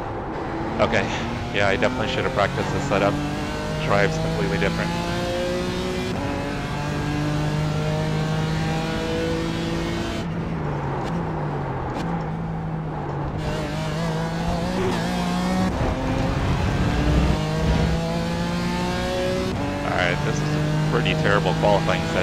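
A racing car engine roars and changes pitch as the gears shift.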